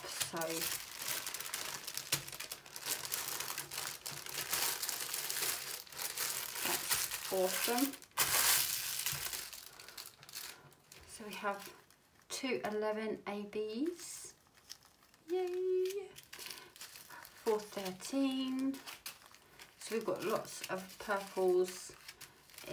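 Plastic bags crinkle and rustle as they are handled.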